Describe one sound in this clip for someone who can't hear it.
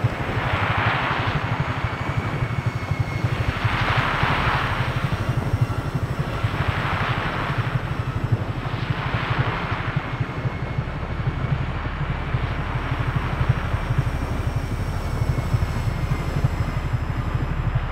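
A helicopter's rotor chops steadily nearby.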